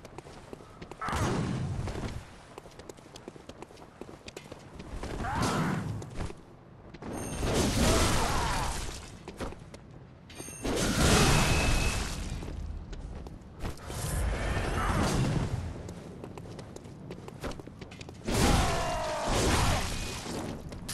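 Heavy blades swing and slash through the air in loud bursts.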